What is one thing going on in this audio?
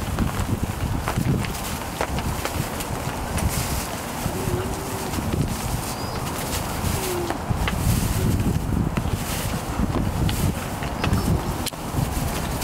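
Puppies scamper and rustle through dry wood shavings.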